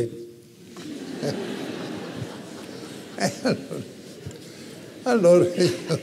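An elderly man speaks through a microphone in a large hall.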